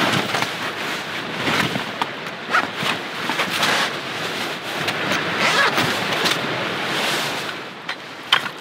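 Split firewood clatters softly into a bag.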